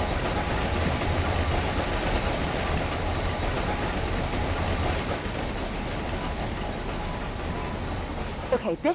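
A train rumbles along its track.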